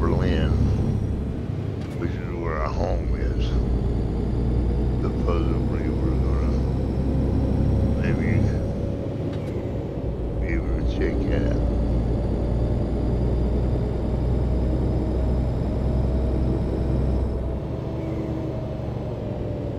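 A truck engine drones steadily and slowly rises in pitch as it speeds up.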